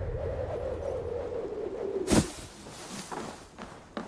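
A heavy body lands with a thump in a pile of hay.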